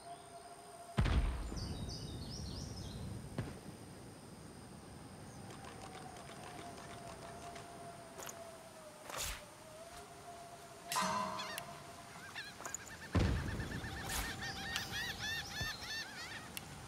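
Soft interface clicks and chimes sound as menus open and close.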